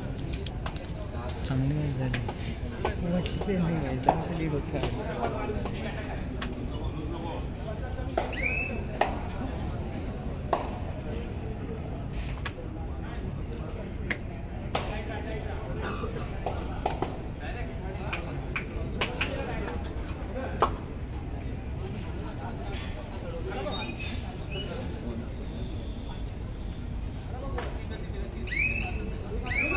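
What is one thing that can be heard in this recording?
A crowd murmurs and chatters in a large open-air venue.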